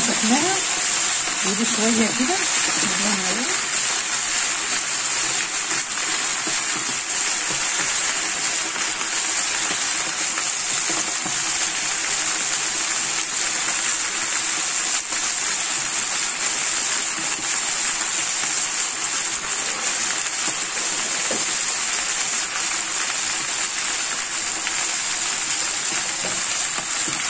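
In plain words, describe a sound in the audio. Greens sizzle and crackle steadily in a hot pan.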